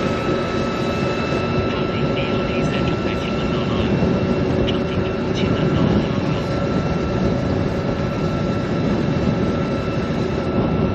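Wind rushes loudly outdoors.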